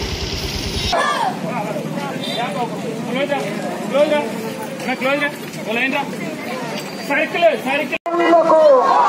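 A crowd of young people chants slogans outdoors.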